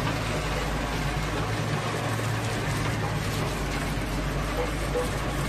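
Gravel pours and rattles off a conveyor onto a pile.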